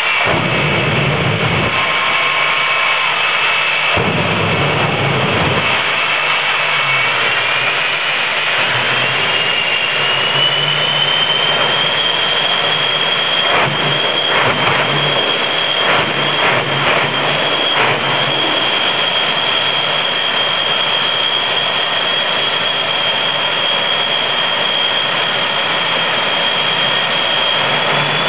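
A turbine-engined truck screams loudly with a high, rising whine.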